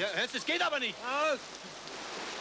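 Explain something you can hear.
A man cries out loudly in a strained voice.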